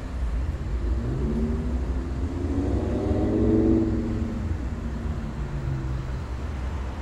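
A vehicle drives past with an engine note that rises and falls.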